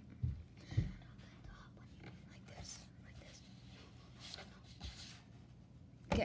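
Hands tap and bump against paper on a table.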